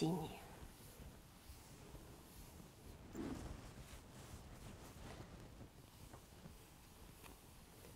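A cloth rubs across a smooth surface.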